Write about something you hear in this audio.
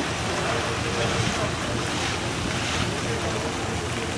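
Elephants splash loudly through water.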